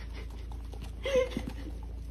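A horse snorts and blows through its nose.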